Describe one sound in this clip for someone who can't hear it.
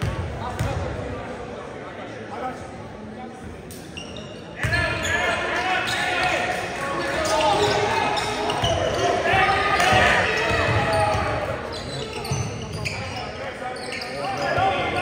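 Spectators and players shout and cheer in an echoing gym.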